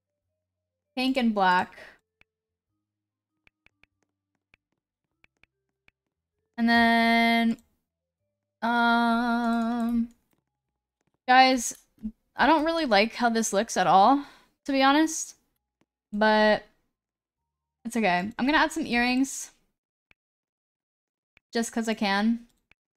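A young woman talks with animation into a close microphone, in short bursts with pauses.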